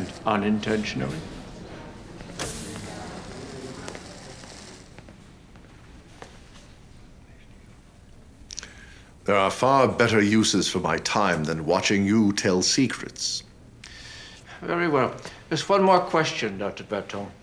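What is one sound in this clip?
A man speaks in a low, gravelly voice.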